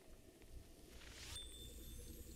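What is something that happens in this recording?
A loud magical blast bursts with a rising whoosh and ringing chimes.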